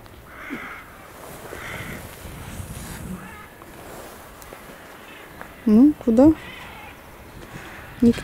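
A young lion's paws rustle through dry grass and twigs.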